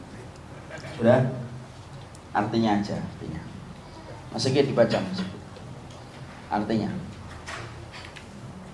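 A man speaks calmly into a microphone, close by.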